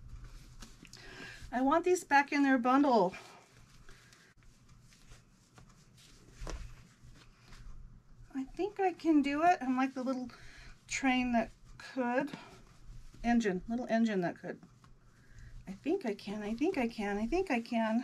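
A middle-aged woman talks calmly and clearly close by.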